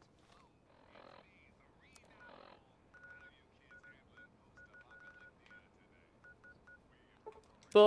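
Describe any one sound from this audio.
A handheld device gives short, quiet electronic beeps and clicks.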